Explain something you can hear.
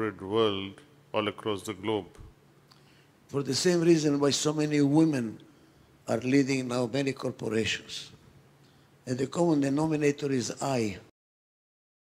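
An elderly man speaks with animation through a headset microphone.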